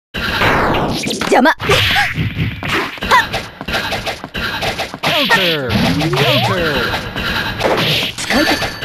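Punches and kicks land with sharp smacks in quick bursts.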